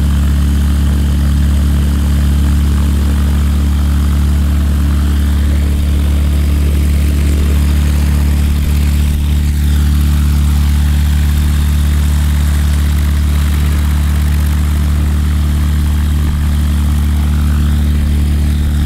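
A small propeller plane's engine idles with a steady low drone close by.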